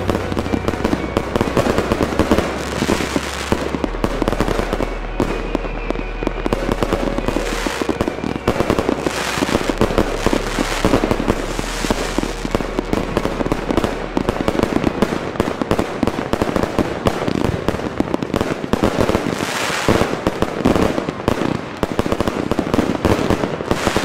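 Fireworks burst and crackle in rapid, continuous bangs.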